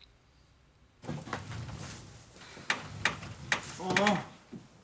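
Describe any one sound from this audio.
Clothes rustle as they are handled.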